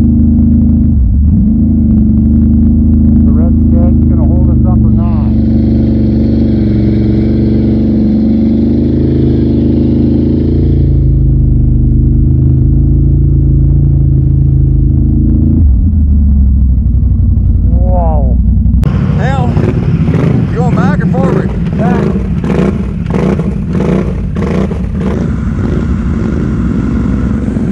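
An all-terrain vehicle engine roars and revs loudly close by.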